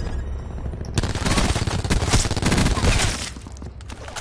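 A rifle fires a rapid burst of shots up close.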